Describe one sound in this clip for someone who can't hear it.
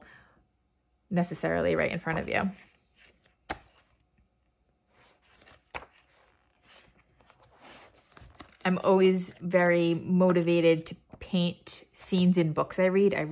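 Paper pages rustle and flap as a book's pages are turned.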